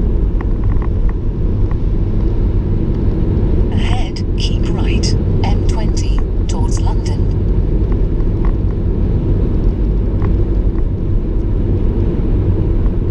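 A car engine drones steadily inside a moving car.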